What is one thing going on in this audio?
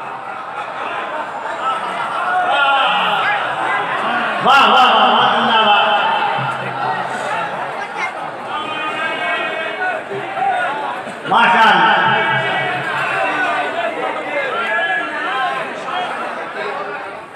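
A man speaks loudly into a microphone over a public address system.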